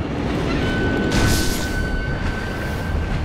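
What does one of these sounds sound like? Water splashes loudly as a swimmer breaks the surface.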